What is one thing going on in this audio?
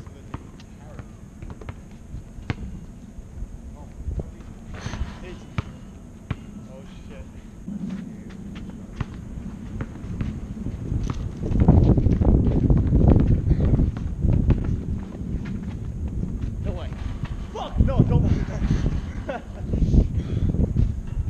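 A basketball bounces on hard pavement outdoors.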